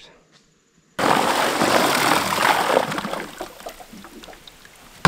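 Water churns and splashes as a small boat motor starts up.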